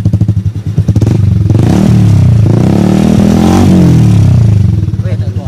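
A motorcycle engine revs up and down loudly.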